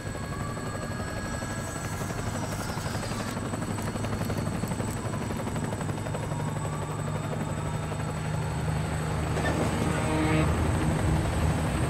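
A helicopter's rotor thumps and whirs nearby.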